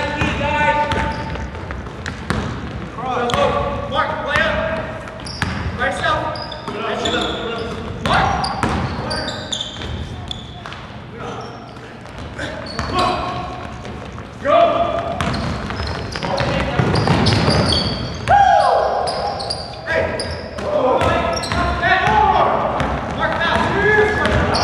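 Young men shout to each other during a game.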